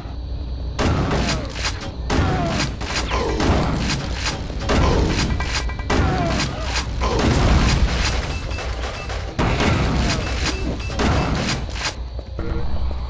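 A shotgun fires repeatedly with loud blasts.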